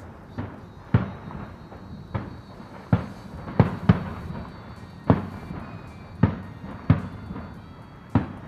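Fireworks burst with loud booming bangs in the distance, one after another.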